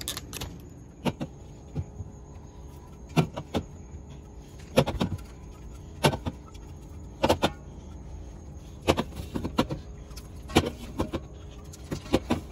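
Aluminium drink cans clink down onto a glass fridge shelf.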